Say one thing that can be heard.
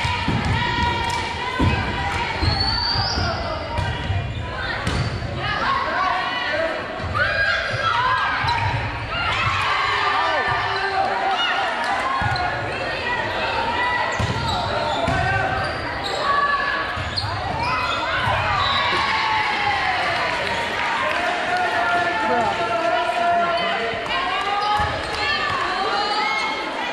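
A crowd of young women chatter and call out loudly in a large echoing gym.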